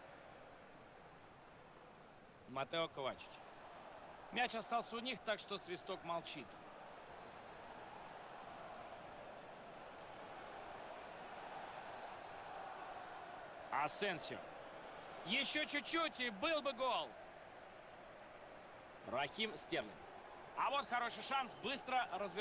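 A stadium crowd murmurs steadily and swells as play nears the goal.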